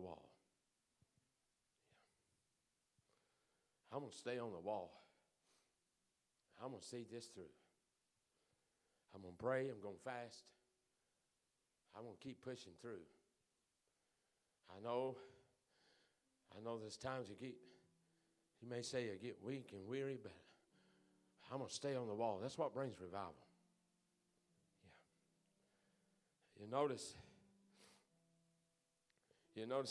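A man speaks calmly into a microphone, with pauses, in an echoing hall.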